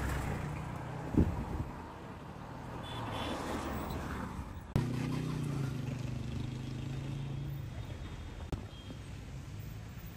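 Car engines idle and rumble in slow traffic outdoors.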